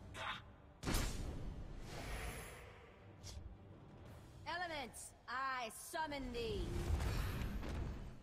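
Magical game sound effects whoosh and shimmer.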